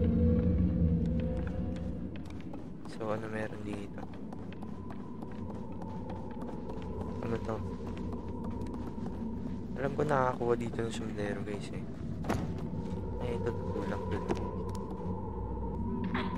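Small footsteps patter on creaking wooden floorboards.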